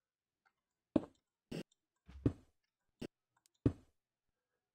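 Stone blocks are placed with short, dull thuds.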